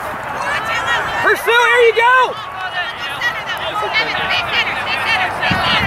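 Children and adults call out and chatter across an open field.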